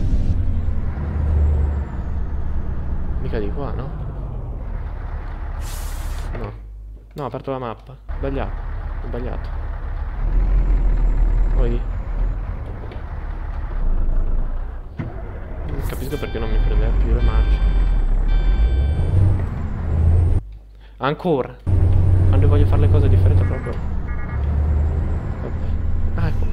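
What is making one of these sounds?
A truck engine rumbles and hums steadily.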